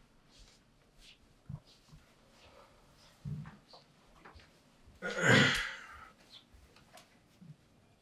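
Footsteps thud softly across a floor.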